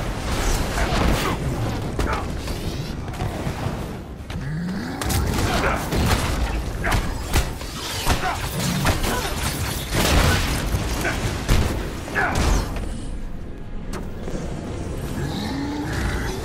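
Jet thrusters roar and blast.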